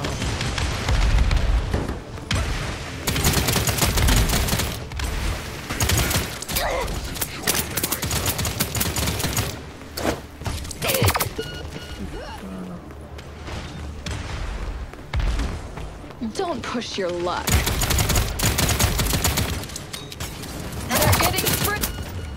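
Game gunfire crackles in rapid bursts.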